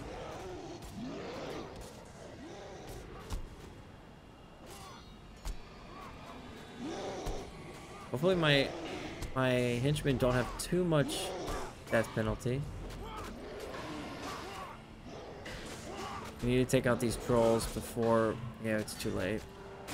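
Magic spells whoosh and burst during a fight.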